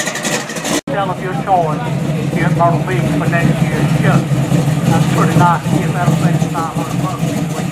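A car engine revs up.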